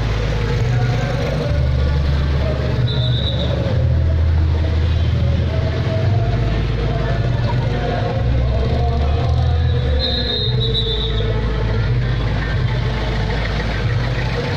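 Motorcycle engines rumble and buzz as they ride past close by.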